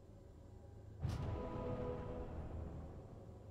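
A magic spell bursts with a loud whoosh and rumble.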